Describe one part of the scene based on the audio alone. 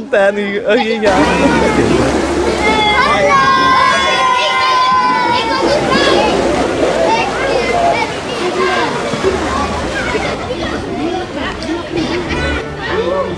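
A crowd of children and adults chatter and shout excitedly.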